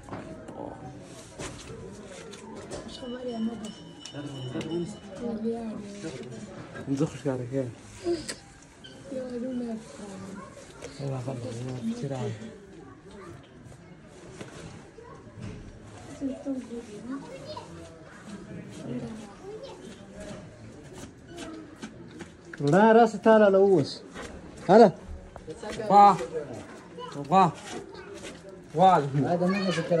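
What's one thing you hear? Young men talk nearby.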